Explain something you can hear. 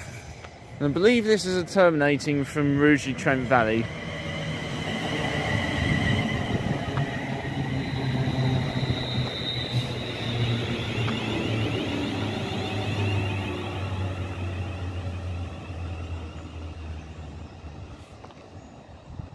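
An electric train rumbles past close by and slowly fades away.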